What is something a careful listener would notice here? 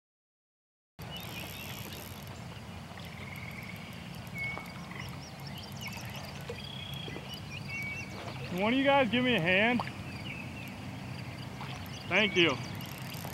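A fishing reel whirs as line is reeled in.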